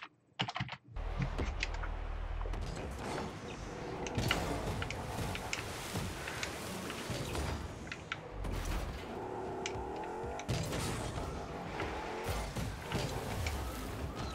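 A video game car engine hums and roars.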